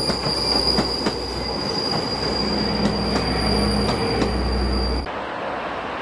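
A passenger train rolls past close by, its wheels clicking over rail joints.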